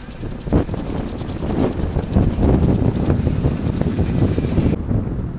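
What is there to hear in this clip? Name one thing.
A pedal vehicle rolls over asphalt with a low rumble.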